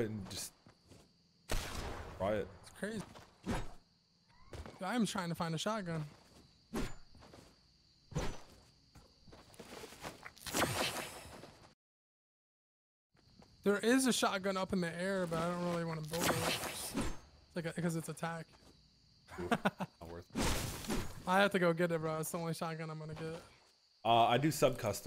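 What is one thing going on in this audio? Footsteps run quickly across grass and dirt.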